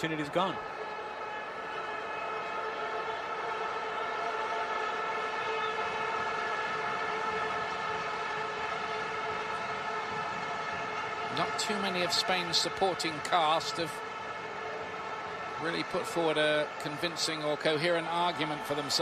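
A large crowd roars and chants steadily in an open stadium.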